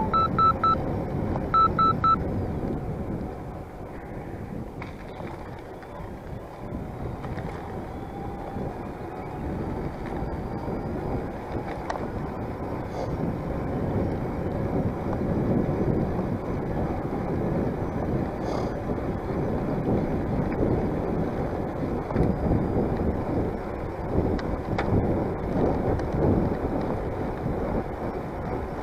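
Wind rumbles and buffets against a microphone outdoors.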